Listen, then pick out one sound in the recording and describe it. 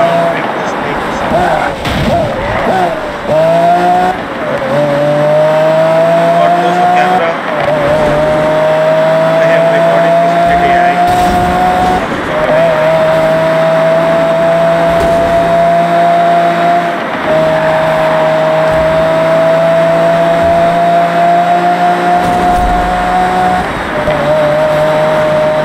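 A sports car engine roars at high speed, climbing in pitch through each gear and dropping at each shift.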